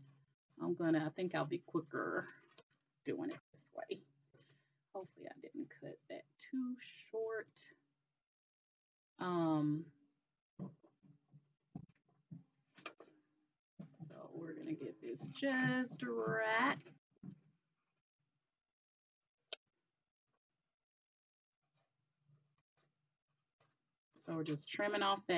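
A woman talks calmly and close by, through a microphone.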